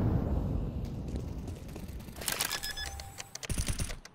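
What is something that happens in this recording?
Electronic keypad beeps sound as a bomb is armed in a game.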